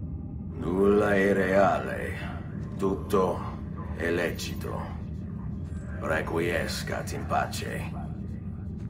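A man speaks slowly and solemnly, close by.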